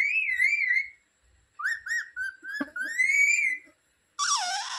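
A parrot whistles and chirps in short, warbling calls close by.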